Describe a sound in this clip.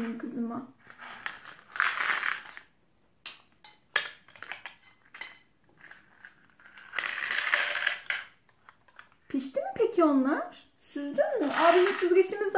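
Plastic toys clatter and knock.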